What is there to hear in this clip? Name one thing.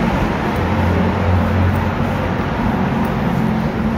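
A car engine rumbles nearby and moves away.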